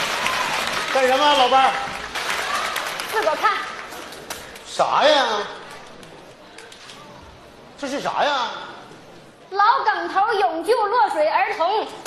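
A middle-aged woman speaks with animation through a microphone.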